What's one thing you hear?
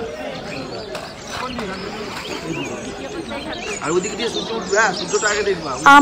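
A crowd of people chatter close by outdoors.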